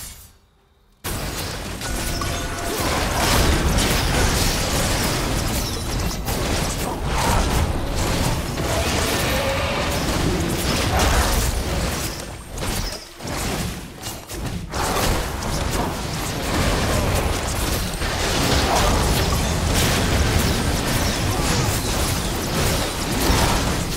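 Video game spell effects crackle and boom during a fight.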